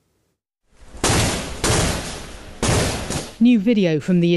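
Loud gunshots ring out and echo.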